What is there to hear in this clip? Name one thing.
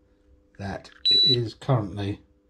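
An electronic meter beeps once when a battery plug is connected.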